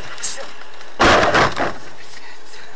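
A van bangs and scrapes against the side of a car.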